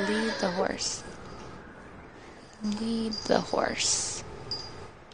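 A young woman talks casually into a microphone.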